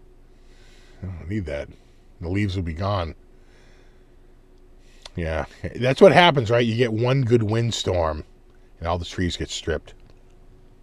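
A middle-aged man talks calmly and cheerfully into a close microphone.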